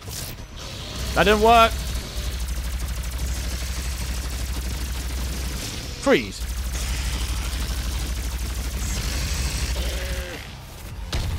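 A rapid-firing energy gun buzzes steadily.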